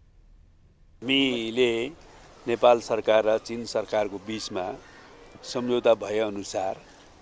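A middle-aged man speaks firmly into microphones close by.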